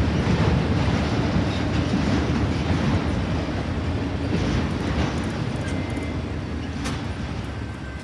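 A freight train rumbles past loudly on its tracks.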